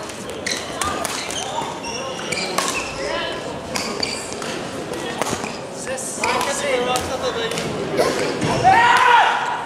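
Rackets strike a shuttlecock with sharp pops in a large echoing hall.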